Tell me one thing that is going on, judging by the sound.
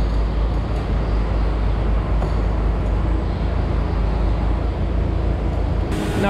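A rubber hose rattles as it is handled.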